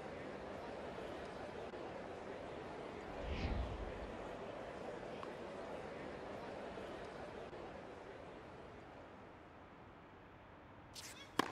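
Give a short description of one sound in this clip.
A large crowd murmurs steadily in a big arena.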